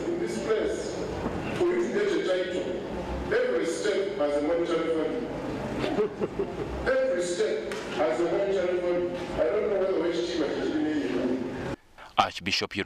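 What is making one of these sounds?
A man speaks steadily and with animation into a microphone.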